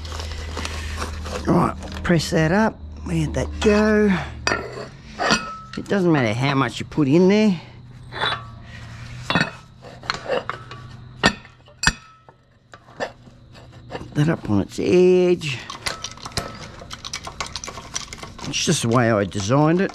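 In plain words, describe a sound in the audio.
Metal parts clank and knock as they are handled.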